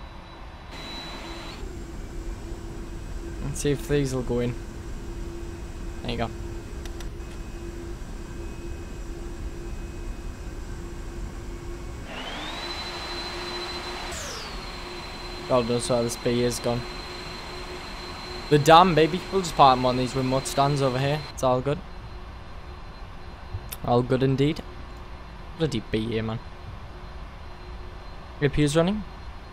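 Jet engines whine and hum steadily.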